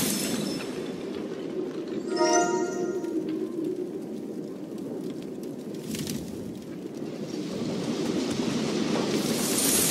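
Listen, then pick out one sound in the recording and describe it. A fire crackles and burns.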